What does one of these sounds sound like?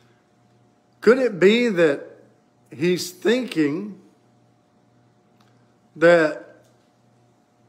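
An older man speaks slowly and expressively, close by, in short bursts.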